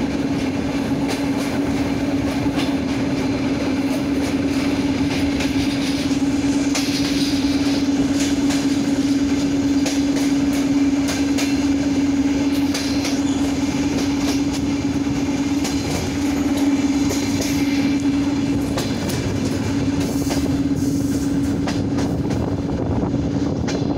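Train wheels rumble and clatter loudly over rail joints.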